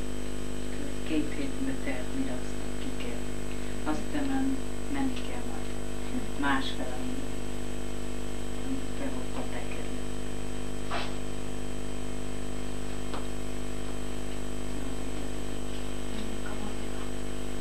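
An elderly woman speaks quietly and haltingly.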